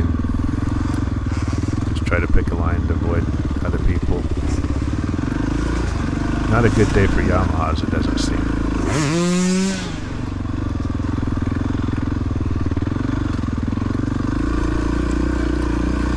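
A dirt bike engine drones steadily up close, revving up and down.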